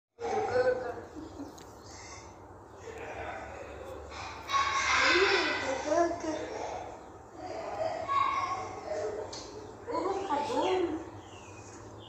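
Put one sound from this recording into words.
A girl talks and giggles close by.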